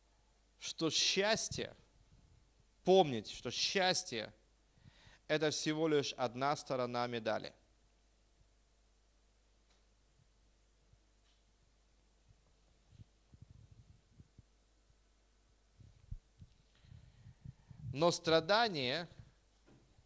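A middle-aged man speaks calmly into a microphone, in short phrases with long pauses.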